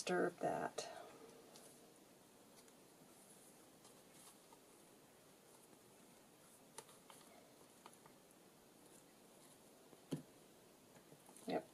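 Paper rustles softly under hands pressing it flat.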